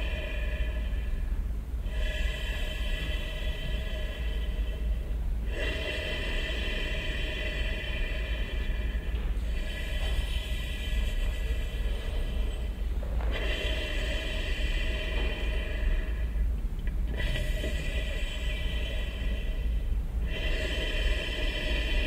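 A saxophone plays long, held notes with short pauses between them.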